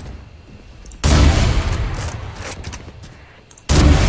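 A sniper rifle fires a loud, booming shot.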